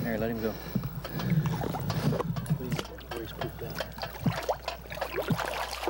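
Water splashes as a fish is lowered into it.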